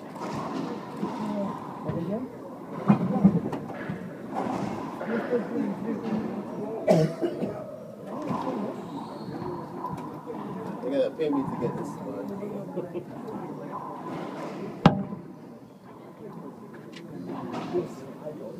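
Young boys talk and call out.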